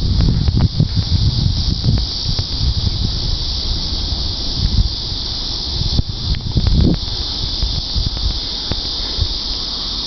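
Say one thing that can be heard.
A train rumbles as it approaches in the distance.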